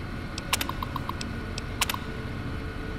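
Keys on a computer terminal clack sharply a few times.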